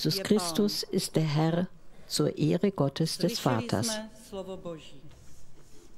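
A middle-aged woman speaks calmly into a microphone in a large echoing hall.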